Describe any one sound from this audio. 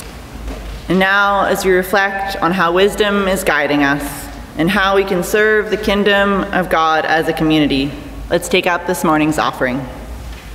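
A young woman speaks calmly into a microphone in an echoing hall.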